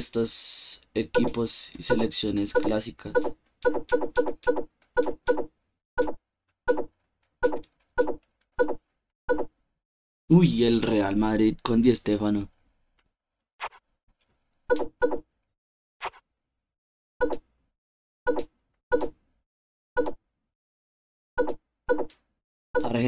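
Short electronic menu clicks tick one after another as options change.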